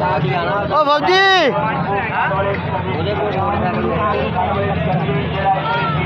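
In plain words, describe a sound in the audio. Several men talk at once nearby, with a busy murmur of voices.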